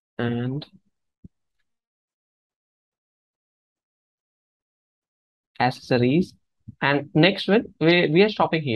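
A man speaks calmly into a close microphone, with pauses.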